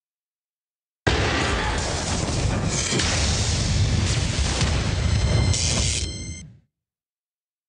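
A treasure chest bursts open with a booming magical whoosh and chimes.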